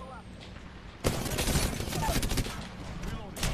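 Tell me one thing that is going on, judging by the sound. Rapid gunfire bursts out in a video game.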